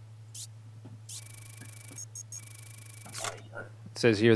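An electronic alert tone buzzes briefly.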